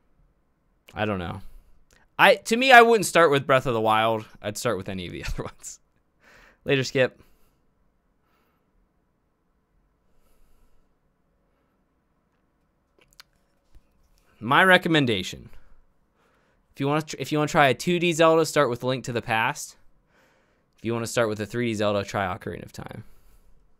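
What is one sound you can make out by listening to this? A young man talks with animation into a close microphone, with pauses.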